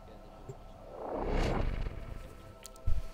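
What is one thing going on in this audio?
A deep whoosh swells and fades.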